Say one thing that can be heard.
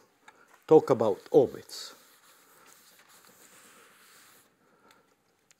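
A felt eraser rubs across a chalkboard.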